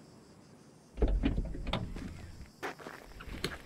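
A car's trunk lid thumps open.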